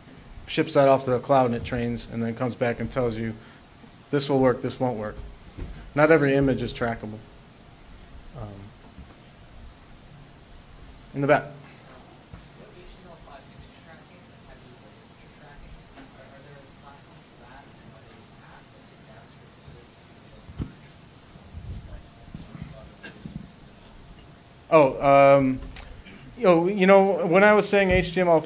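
A man speaks calmly into a microphone in a large room, with pauses.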